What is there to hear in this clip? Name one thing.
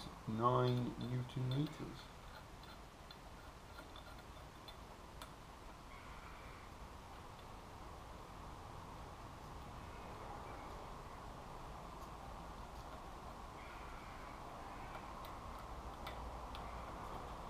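Metal engine parts clink and tap as they are handled.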